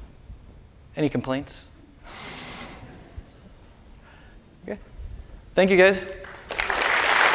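A man speaks into a microphone in a large hall.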